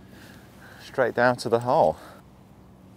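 A man speaks briefly and casually outdoors.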